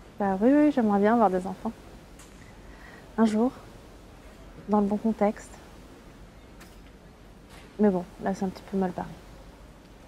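A woman speaks softly and warmly, close by.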